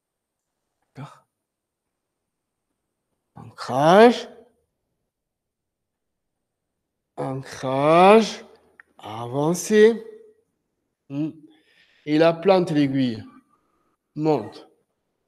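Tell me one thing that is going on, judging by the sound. A man speaks calmly and clearly, pausing between phrases.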